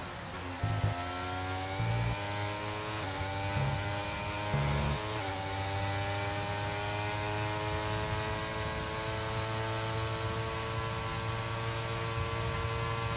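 A racing car engine screams, climbing in pitch through quick gear shifts.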